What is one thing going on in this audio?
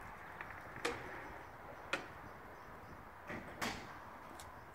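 A metal door latch clicks.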